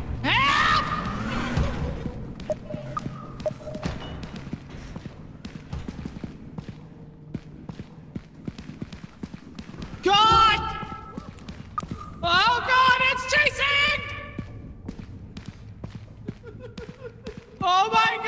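Footsteps scuff on a hard floor in an echoing space.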